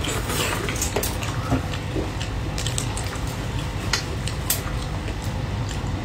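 Shrimp shells crack and crunch as a young woman peels them with her fingers.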